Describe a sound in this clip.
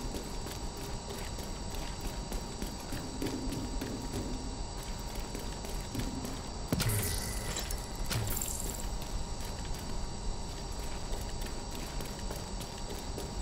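Heavy footsteps thud steadily on a wet floor.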